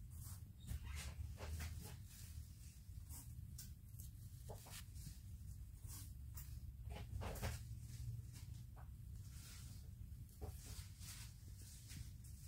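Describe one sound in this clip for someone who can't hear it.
Fingers crinkle and rustle a crumpled wad of paper close by.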